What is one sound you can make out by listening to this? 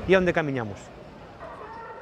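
A middle-aged man speaks close to a microphone.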